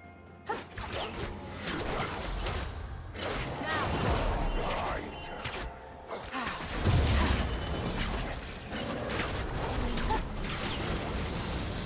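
Fantasy game spells whoosh and crackle in quick bursts.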